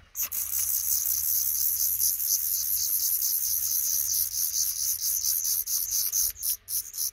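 Baby birds beg with rapid, high, shrill cheeps close by.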